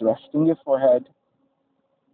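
A man speaks a few calm words close by.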